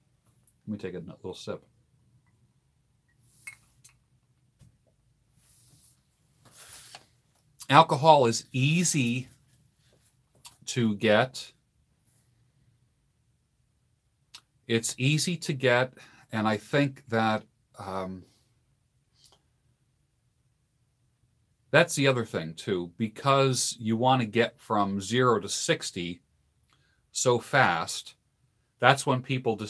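An older man speaks calmly and close to a microphone, with pauses.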